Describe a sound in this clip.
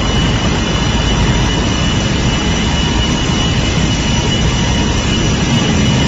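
A car engine drones as a car drives.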